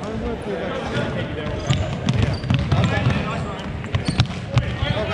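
Sneakers squeak sharply on a wooden floor, echoing in a large hall.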